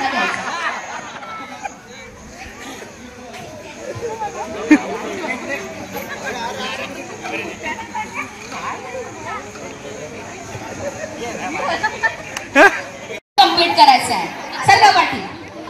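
A crowd of women chatter and laugh nearby.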